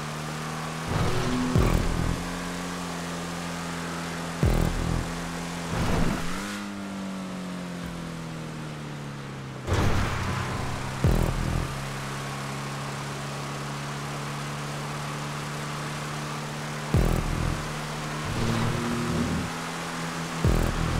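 A car's body thumps and clatters over bumps and landings.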